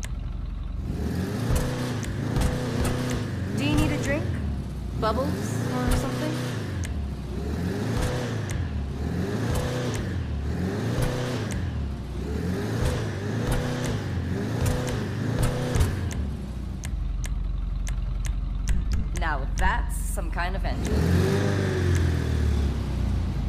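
A car engine revs up and down again and again.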